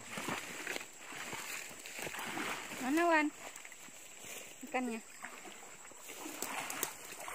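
Water splashes as a boy wades through a shallow stream.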